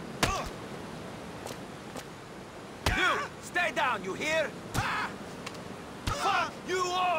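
A man kicks and punches someone with dull thumps.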